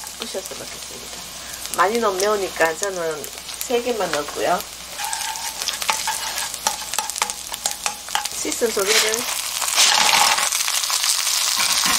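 Garlic and chilies sizzle in hot oil.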